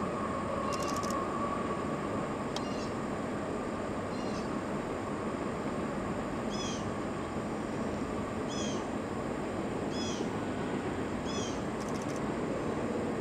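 A distant freight train rumbles steadily across a high bridge.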